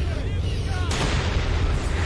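A large explosion bursts close by.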